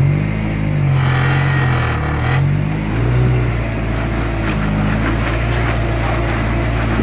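An off-road vehicle's engine revs hard, rising and falling.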